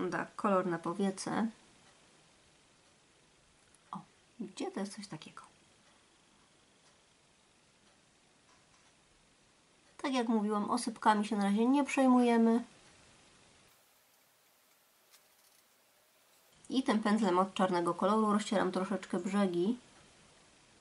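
A woman speaks calmly and close to a microphone, in short bursts.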